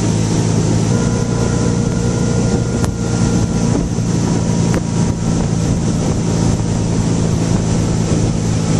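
A motorboat engine drones steadily up close.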